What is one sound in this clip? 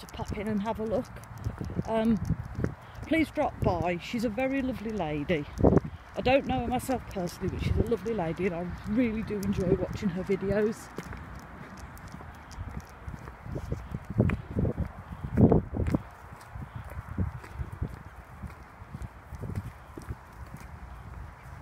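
A dog's paws patter on a paved road.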